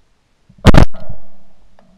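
A shotgun fires once with a loud boom.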